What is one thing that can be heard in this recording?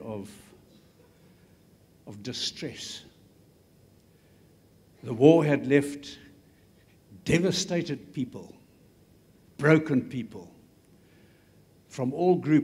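An elderly man speaks slowly into a microphone, with long pauses between phrases.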